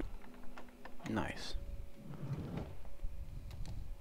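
A sliding door rattles open.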